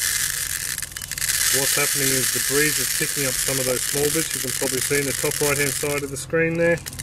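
Seeds patter and rustle as they pour into a plastic tub.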